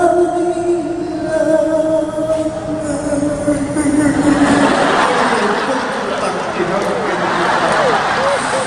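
A woman sings long, held notes through loudspeakers in a large hall.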